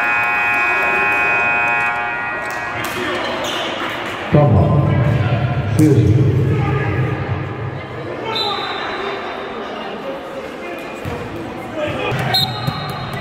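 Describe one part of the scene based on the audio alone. Players and spectators chatter in a large echoing gym.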